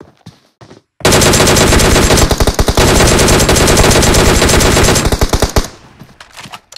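Gunfire rattles in rapid bursts, loud and close.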